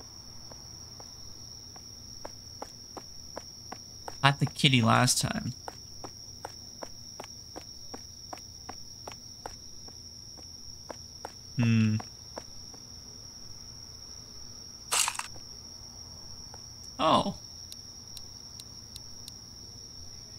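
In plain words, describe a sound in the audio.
Footsteps tread steadily on wood and gravel.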